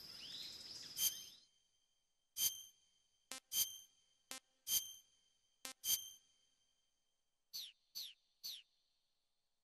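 Short electronic menu beeps sound one after another.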